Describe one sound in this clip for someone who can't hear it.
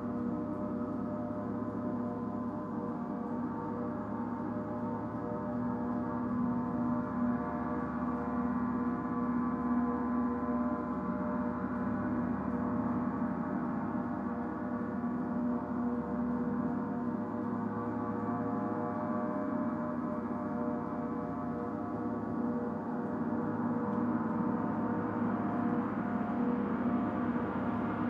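Large gongs hum and shimmer with a deep, steady ringing drone that swells slightly.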